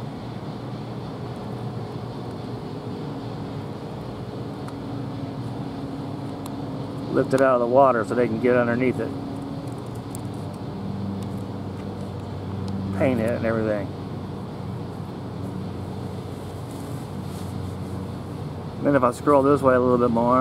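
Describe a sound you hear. A large ship's engine hums low and steady.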